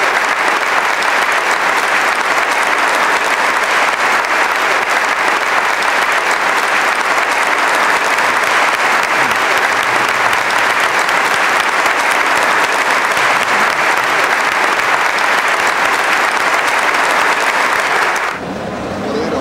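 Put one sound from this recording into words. A large audience applauds loudly and steadily in a big hall.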